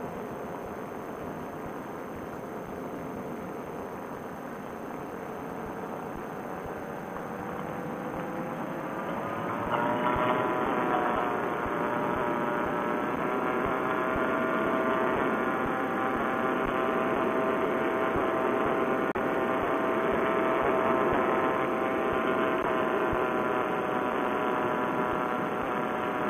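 An engine drones steadily close by and rises in pitch.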